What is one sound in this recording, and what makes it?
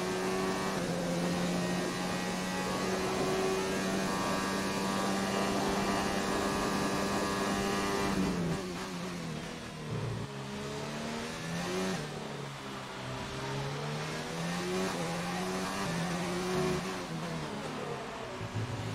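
A racing car engine screams at high revs, then drops and rises through the gears.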